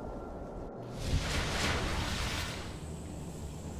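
An electric charge crackles and hisses loudly.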